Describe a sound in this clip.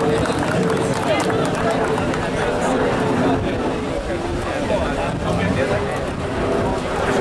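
A crowd of men and women chatter outdoors close by.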